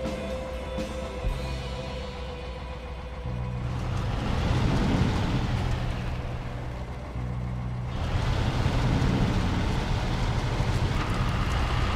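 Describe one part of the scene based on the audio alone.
A heavy truck engine drones and revs steadily.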